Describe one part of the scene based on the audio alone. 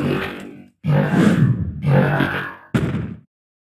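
A sword swishes and strikes a creature.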